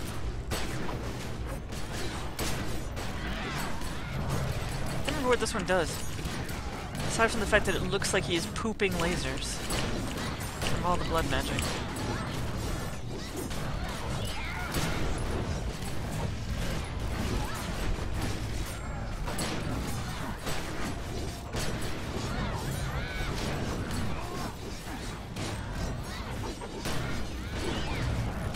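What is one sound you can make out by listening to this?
Game weapons fire and blast in rapid bursts.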